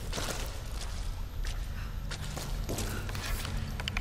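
Footsteps splash and scuff on wet, rocky ground.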